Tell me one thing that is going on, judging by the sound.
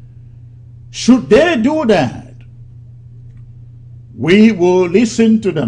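A man speaks calmly and firmly into a close microphone, with pauses between phrases.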